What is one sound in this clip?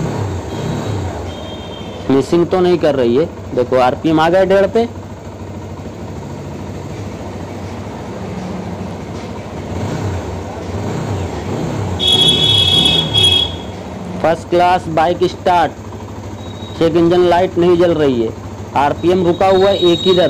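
A motorcycle engine idles with a low, steady hum.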